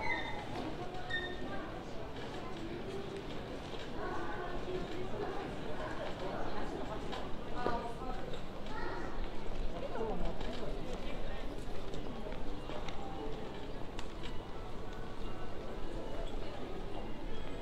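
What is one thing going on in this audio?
A crowd of passersby chatters in the background.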